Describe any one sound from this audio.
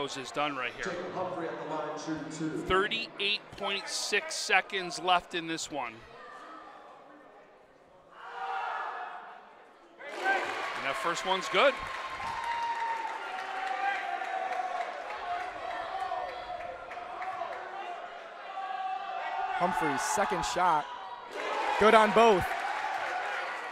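A crowd chatters and calls out in an echoing gym.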